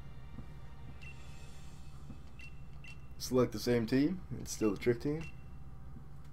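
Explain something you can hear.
Short electronic menu beeps chime.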